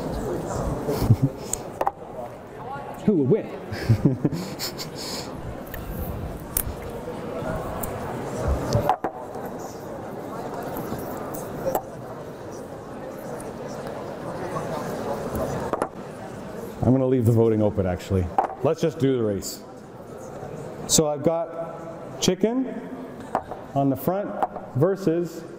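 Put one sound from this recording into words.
A man speaks to an audience in a large, echoing hall.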